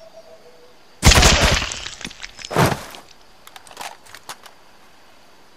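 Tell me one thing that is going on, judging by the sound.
A rifle fires a loud burst of shots that echoes.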